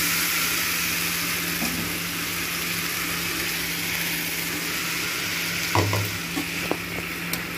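Batter sizzles in a hot pan.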